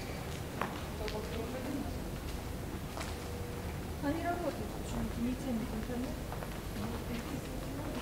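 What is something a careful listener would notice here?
Footsteps tap on a stone pavement.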